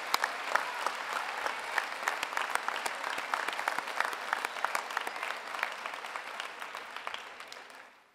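An audience claps steadily in a large hall, then fades.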